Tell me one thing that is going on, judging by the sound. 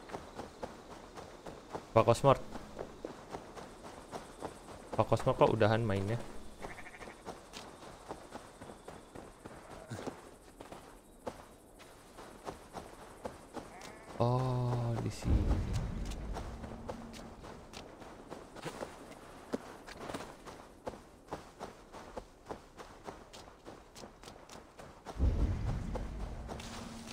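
Footsteps thud and rustle through grass at a running pace.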